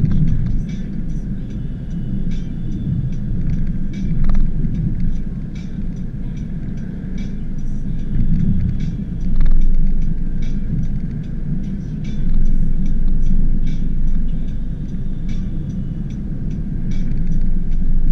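Tyres rumble and rattle on a rough road.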